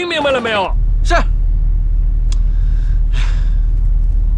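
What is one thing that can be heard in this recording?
A young man speaks tensely inside a car.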